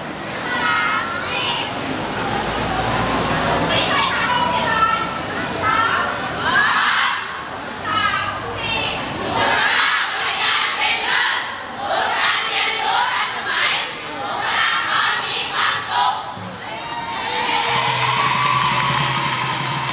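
A crowd of young people cheers and shouts.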